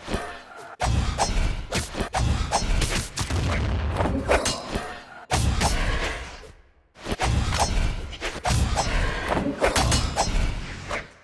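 Cartoon fighters land punchy hits and swooshing attacks in quick bursts.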